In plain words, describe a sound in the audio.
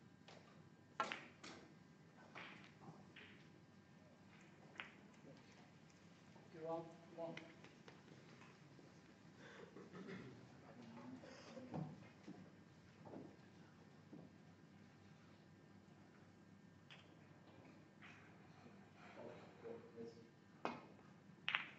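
A snooker cue strikes the cue ball.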